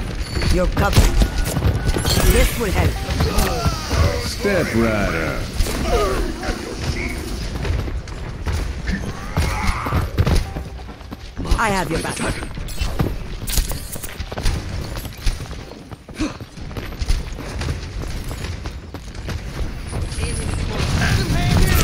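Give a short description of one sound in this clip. Gunshots and game effects crackle in a video game.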